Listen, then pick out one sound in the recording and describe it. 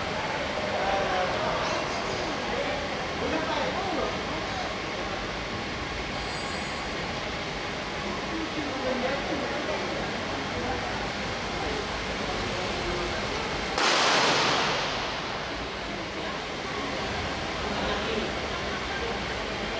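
Racing bicycles whir along a wooden track.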